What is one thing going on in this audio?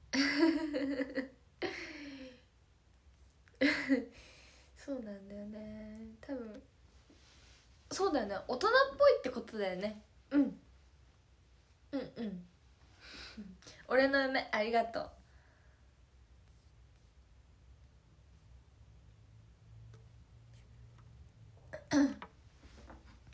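A young woman talks cheerfully and close to a microphone, in short bursts with pauses.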